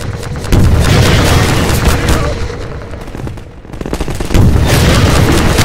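A rocket fires with a loud whooshing roar.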